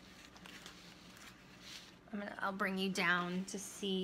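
Plastic sheeting crinkles as hands handle it.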